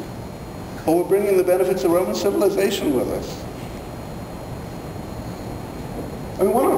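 A middle-aged man speaks with animation in a room with some echo.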